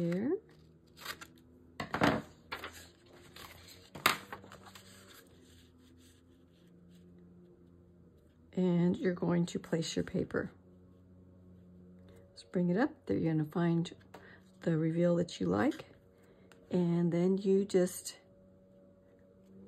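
Paper rustles and slides as hands handle it.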